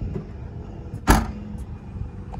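A car's boot lid slams shut.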